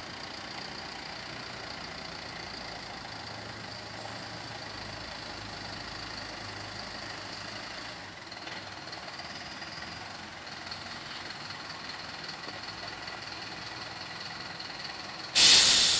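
A bus engine idles steadily nearby.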